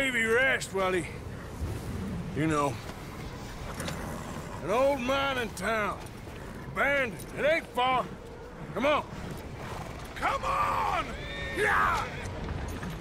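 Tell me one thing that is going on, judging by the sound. A man speaks in a low, gruff voice.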